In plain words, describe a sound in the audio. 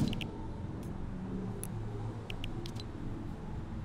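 Short menu clicks tick a few times.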